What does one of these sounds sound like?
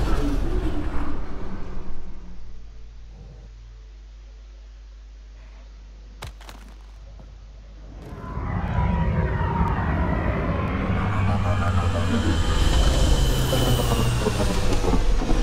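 A spaceship engine rumbles deeply.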